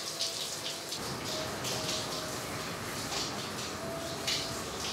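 Water from a shower splashes steadily.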